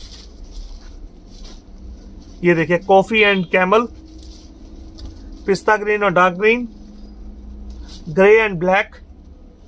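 Cloth rustles softly as folded fabric is handled.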